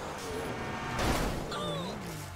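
A car crashes with a loud thud.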